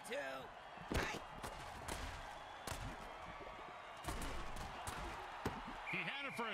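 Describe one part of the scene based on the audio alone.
Armoured players collide with heavy thuds.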